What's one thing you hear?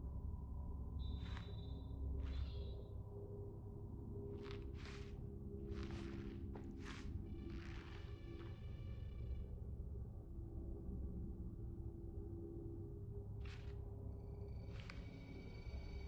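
Short, soft menu blips sound as a selection moves from item to item.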